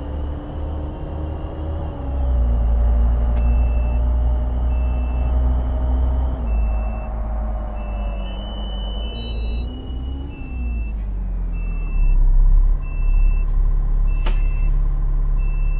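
A bus engine hums steadily, rising and falling in pitch.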